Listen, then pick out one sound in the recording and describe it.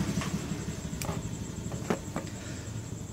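Small metal engine parts click and clink as they are handled.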